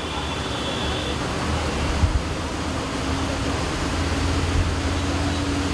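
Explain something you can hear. Car tyres hiss on a wet road.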